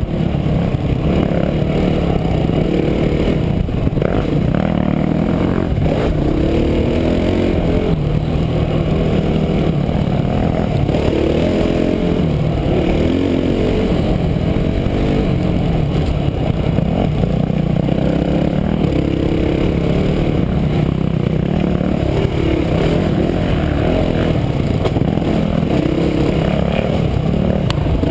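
A dirt bike engine drones loudly close by, rising and falling in pitch.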